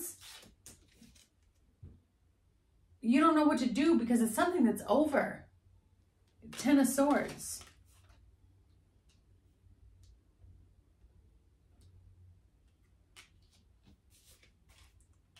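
Cards rustle softly as a young woman handles them.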